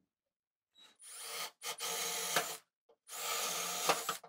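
A cordless drill whines loudly, drilling into stone in bursts.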